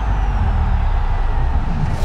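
A large stadium crowd roars.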